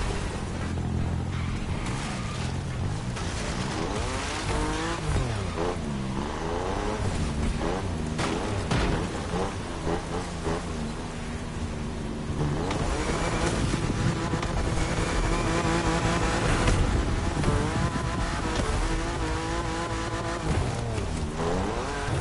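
A car engine revs hard, rising and falling in pitch as the gears change.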